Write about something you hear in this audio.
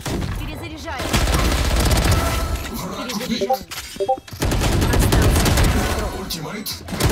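Rapid gunshots fire in bursts close by.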